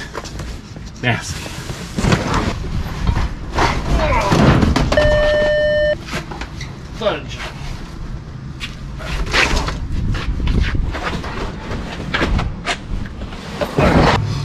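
Things clatter and thump inside a storage unit.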